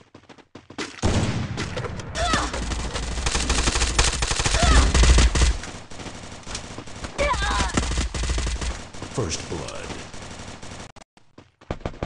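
Rapid gunshots crack in short bursts.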